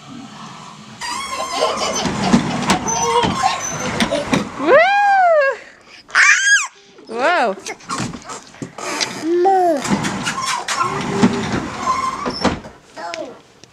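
A small boy squeals and laughs excitedly.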